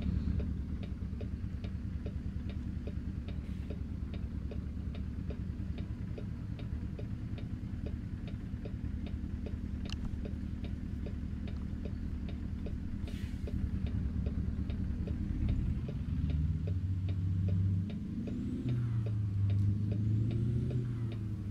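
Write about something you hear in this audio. A turn signal ticks steadily inside a truck cab.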